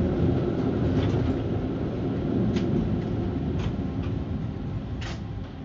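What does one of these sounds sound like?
Metal fittings rattle and clatter inside a moving tram.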